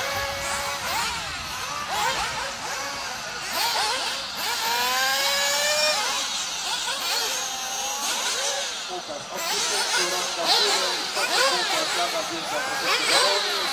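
Small electric model racing cars whine, rising and falling in pitch as they speed around a track.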